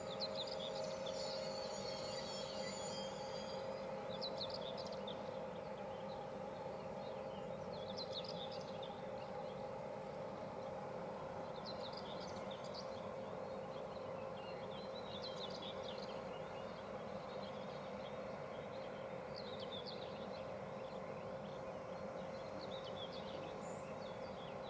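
An electric train hums steadily while standing still.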